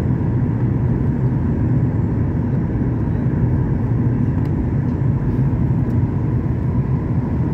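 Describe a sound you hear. Aircraft engines drone steadily in a low roar from inside the cabin.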